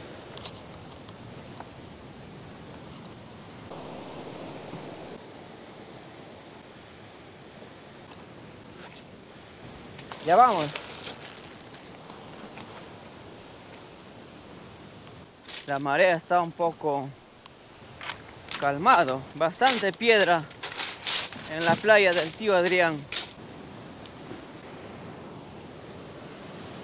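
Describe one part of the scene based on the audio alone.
Sea waves wash and break against rocks nearby.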